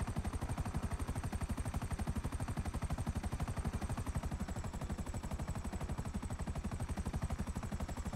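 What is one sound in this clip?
Helicopter rotor blades thump rapidly and steadily overhead.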